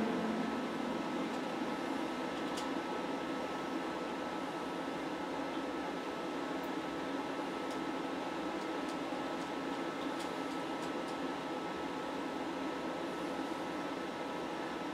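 An electric guitar plays a steady, droning sound through an amplifier.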